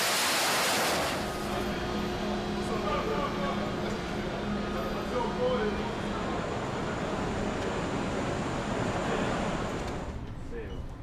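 Machinery hums steadily in a large echoing hangar.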